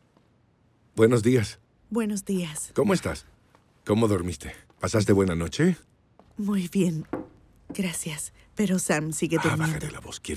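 A young woman speaks with agitation close by.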